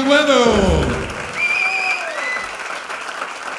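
A man sings a final long note through a microphone.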